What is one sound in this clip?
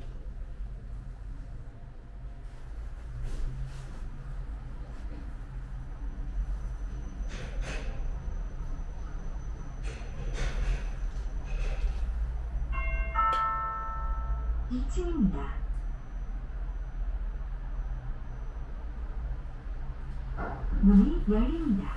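An elevator hums steadily as it rides.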